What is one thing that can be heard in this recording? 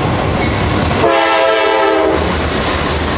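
A train horn blares loudly.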